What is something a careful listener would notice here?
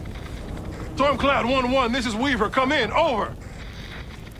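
A man's voice speaks calmly over a radio.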